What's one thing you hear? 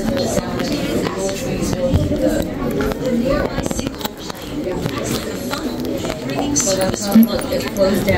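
Adults and children chatter nearby.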